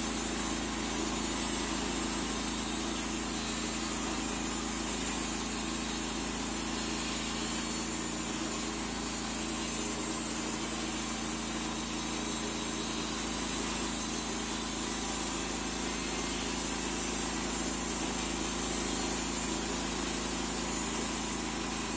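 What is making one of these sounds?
A band saw cuts through a log with a loud buzzing whine.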